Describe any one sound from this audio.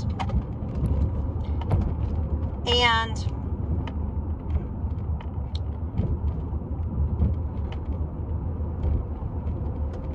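A car engine hums steadily with a low road rumble.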